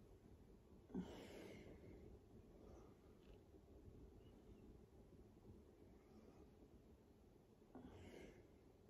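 A woman breathes out slowly and deeply, close by.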